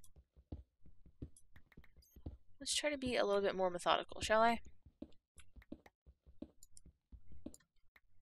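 Footsteps patter on stone.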